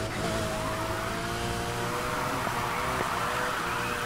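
Tyres screech as a car drifts around a bend.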